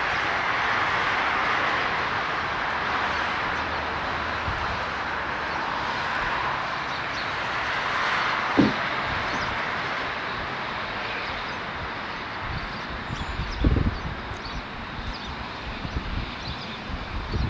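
Jet engines roar loudly as an airliner starts its takeoff roll.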